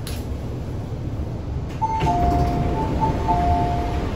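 Train doors slide open.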